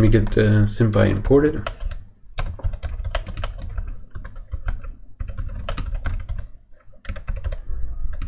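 Computer keys click as someone types.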